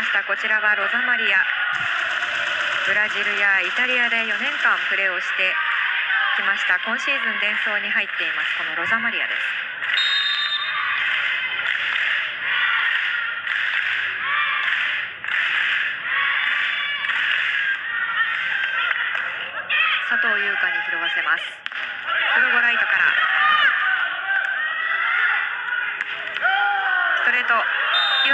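A large crowd chants and cheers loudly in an echoing hall.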